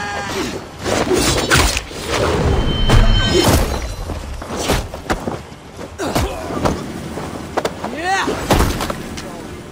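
Heavy blows and clashing weapons strike in a fight.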